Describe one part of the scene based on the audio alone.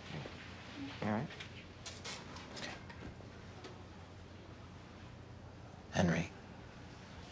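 A woman speaks quietly nearby.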